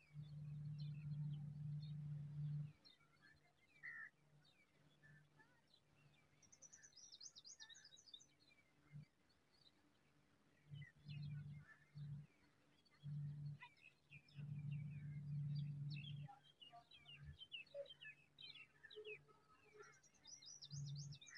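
A nestling chirps.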